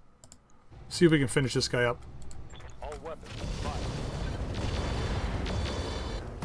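Laser weapons fire with sharp electric zaps.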